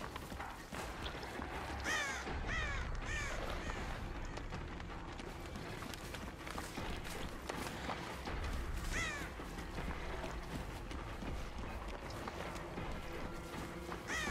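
Heavy footsteps tread steadily over soft ground.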